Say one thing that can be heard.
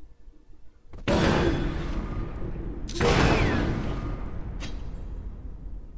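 Creatures in a card game clash with whooshing, crashing impact sounds.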